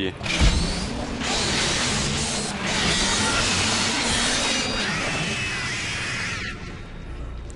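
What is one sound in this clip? A weapon fires with a steady hissing roar.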